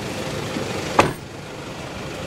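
A car door shuts with a thud.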